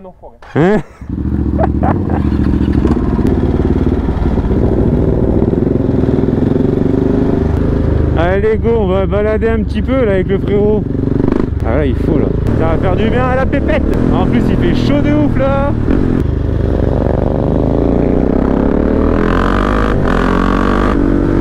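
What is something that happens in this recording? A motorcycle engine rumbles steadily close by as it rides along.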